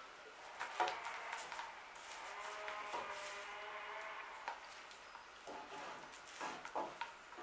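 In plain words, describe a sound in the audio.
A plastic bottle knocks lightly on wood.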